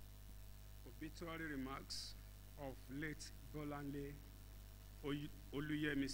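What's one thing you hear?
A young man speaks calmly into a microphone, heard through a loudspeaker.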